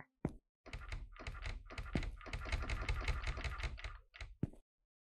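A locked door handle rattles hard.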